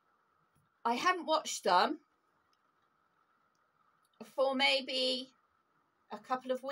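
A middle-aged woman talks calmly and close up, with pauses between phrases.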